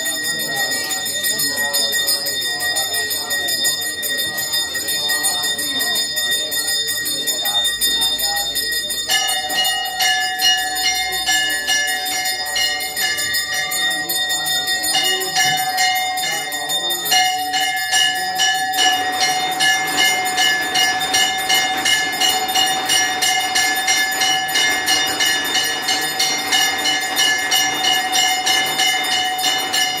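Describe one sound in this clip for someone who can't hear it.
Bells ring steadily and rapidly, growing louder and more rhythmic partway through.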